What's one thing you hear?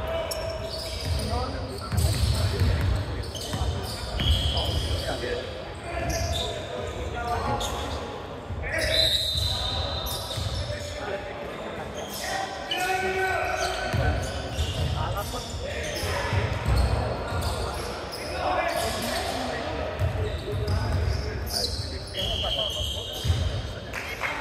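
A basketball bounces on a wooden court with dull thuds.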